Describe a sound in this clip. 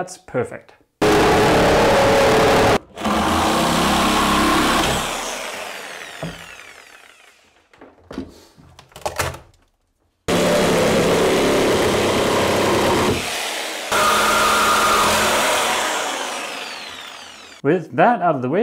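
A power saw cuts loudly through wood, in long bursts.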